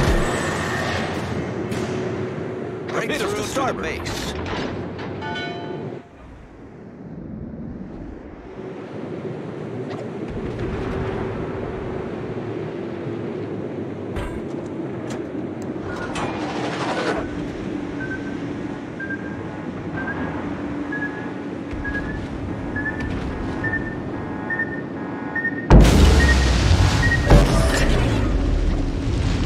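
A warship's engines rumble steadily over the sea.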